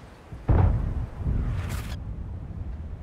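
A tank cannon fires with a deep boom that rumbles away.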